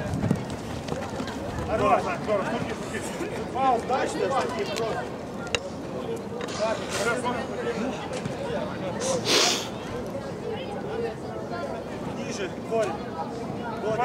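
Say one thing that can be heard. Young men call out to each other outdoors at a distance.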